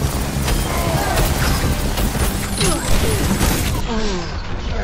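An energy weapon fires in rapid bursts.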